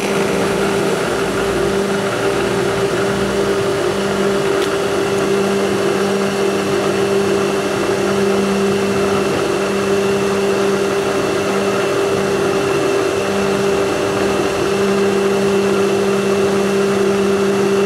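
A small water pump engine runs close by with a steady loud drone.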